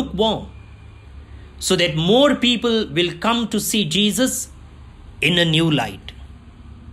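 An elderly man speaks with forceful emotion, close by.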